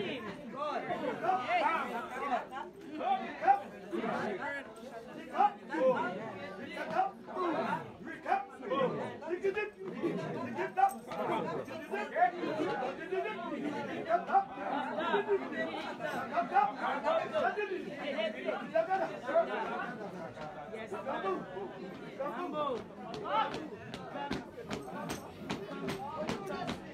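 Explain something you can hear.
A group of men and women sing together loudly nearby.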